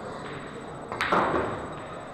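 A cue strikes a pool ball with a sharp tap.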